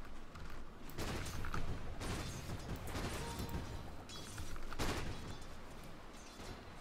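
Fighting sound effects crash and clatter in a game.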